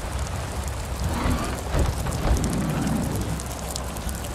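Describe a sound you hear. A large winged creature screeches and roars.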